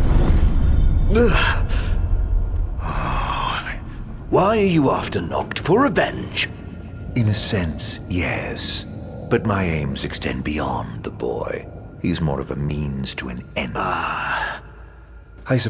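A man speaks slowly in a low, mocking voice.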